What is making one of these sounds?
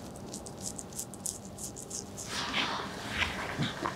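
A straight razor scrapes across stubble.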